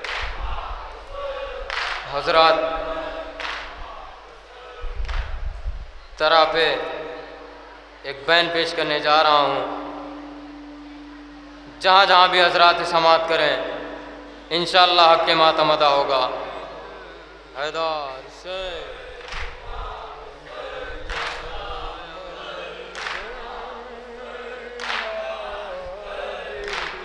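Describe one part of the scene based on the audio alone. A crowd of men beat their chests in rhythm.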